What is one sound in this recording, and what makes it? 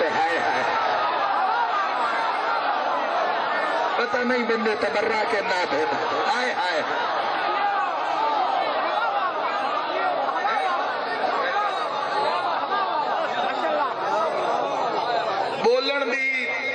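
A crowd of men chants loudly along.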